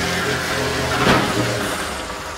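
A bus crashes into another bus with a loud metal bang.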